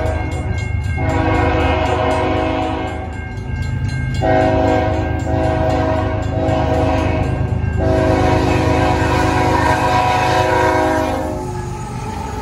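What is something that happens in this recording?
A train horn blares in long, loud blasts.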